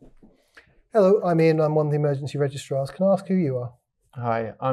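A man speaks calmly nearby.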